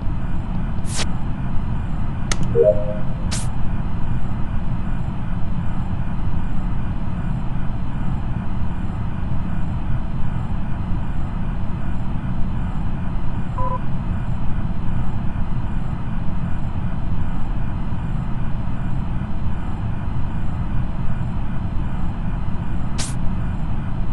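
A panel opens with an electronic blip.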